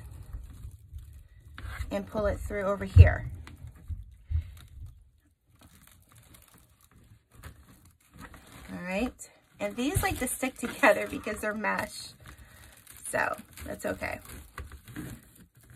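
Plastic mesh ribbon rustles and crinkles as hands fold it.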